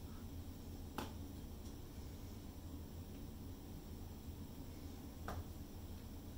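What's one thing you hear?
A plastic cup is set down with a light tap.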